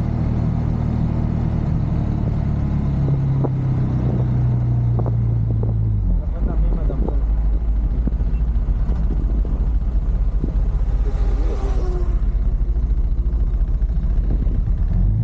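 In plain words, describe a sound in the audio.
A motorcycle engine hums steadily as the bike rides along.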